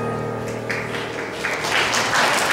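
A piano plays a final chord that rings out.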